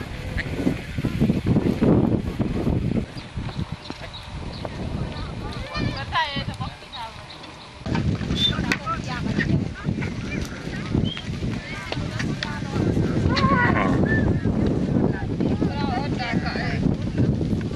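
Hooves of cattle and donkeys trudge over dry ground.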